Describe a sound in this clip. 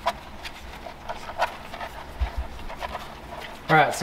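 Newborn puppies suckle with soft wet smacking and clicking sounds.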